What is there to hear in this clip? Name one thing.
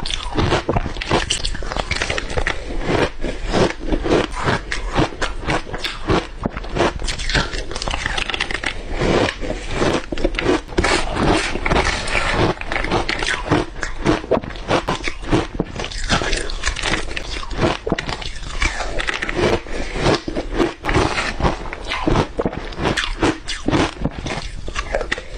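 A young woman chews and crunches crisp greens loudly and close to a microphone.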